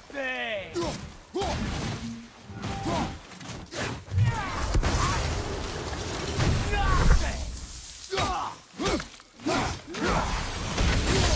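Heavy blows thud and crash into snow and rock.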